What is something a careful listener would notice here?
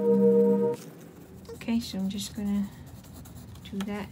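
A crayon scratches across paper.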